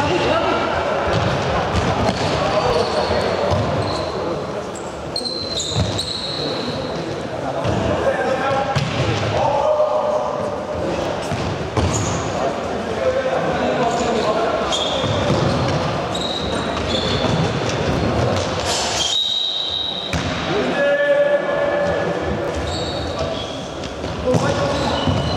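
Young players shout to each other in a large echoing hall.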